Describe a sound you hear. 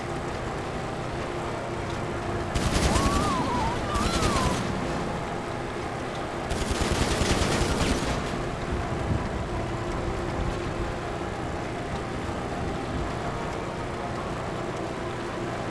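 A muscle car engine drones at speed.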